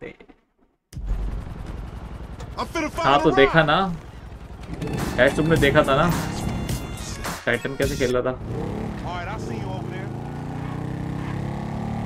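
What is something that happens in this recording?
A motorbike engine runs and revs.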